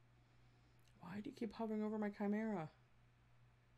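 A woman speaks briefly and expressively into a close microphone.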